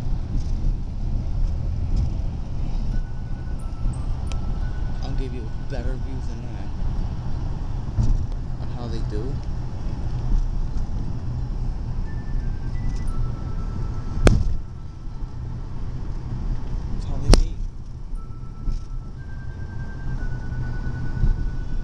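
Fireworks bang sharply outdoors.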